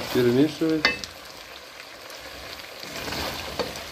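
A wooden spatula scrapes and stirs food in a pan.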